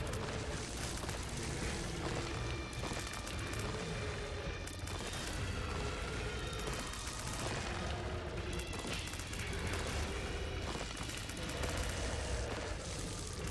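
Rapid video game shots pop and splatter.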